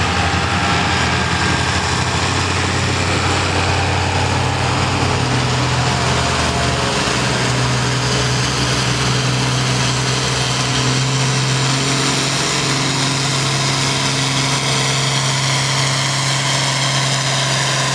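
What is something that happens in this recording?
A tractor engine roars loudly under heavy strain, its pitch shifting as it pulls.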